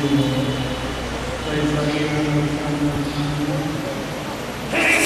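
An elderly man speaks slowly into a microphone, echoing in a large hall.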